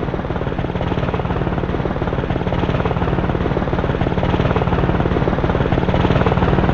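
A helicopter's rotor thumps rapidly and steadily.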